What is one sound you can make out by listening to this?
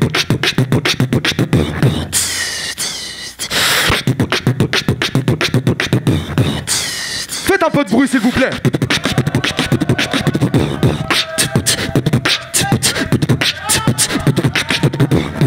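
A young man beatboxes rapidly into a microphone, with sharp clicks and deep thumps.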